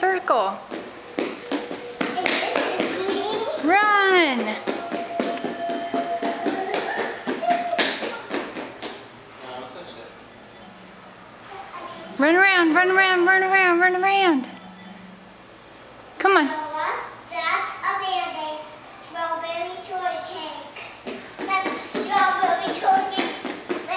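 A young girl sings and calls out loudly nearby in an echoing room.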